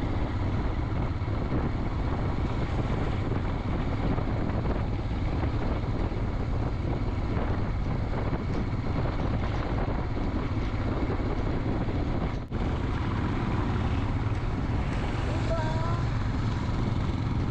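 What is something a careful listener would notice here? Wind roars steadily outdoors.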